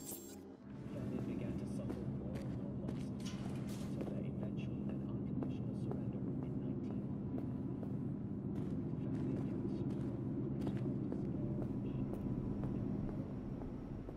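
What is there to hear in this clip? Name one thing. Footsteps climb a set of stairs.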